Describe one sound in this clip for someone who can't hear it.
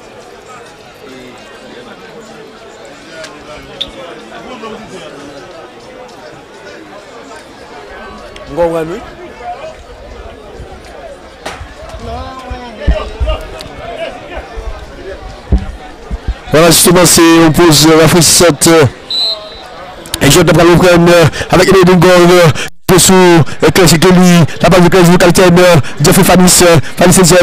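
A crowd murmurs and cheers far off outdoors.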